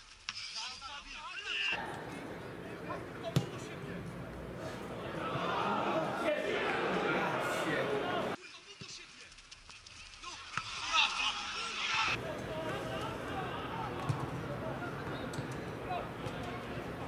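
A crowd of spectators cheers and shouts in an open stadium.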